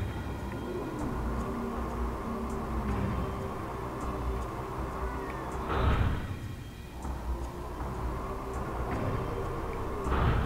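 A fiery magic charge hums and crackles steadily.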